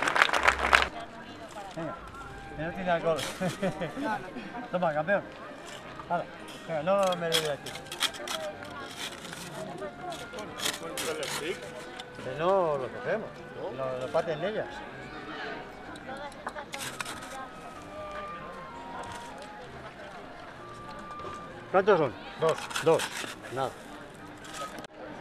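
A crowd of men, women and children chat nearby outdoors.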